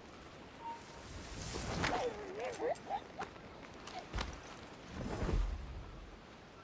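Leaves rustle as bodies push through dense bushes.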